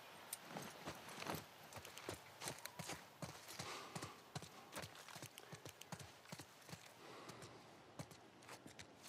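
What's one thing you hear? Footsteps crunch on a hard floor scattered with leaves.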